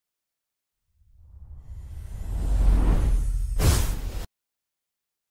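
Sparks of fireworks hiss and burst with a swelling rush.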